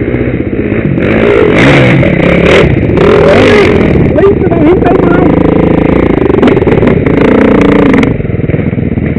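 A second dirt bike engine revs hard nearby as it climbs.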